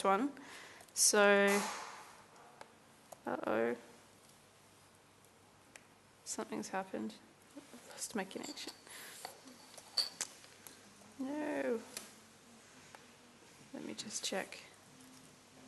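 A woman speaks through a microphone in short bursts, pausing between them.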